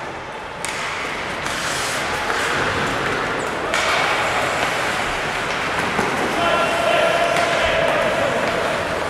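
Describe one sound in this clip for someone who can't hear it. Hockey sticks clatter against the ice and puck.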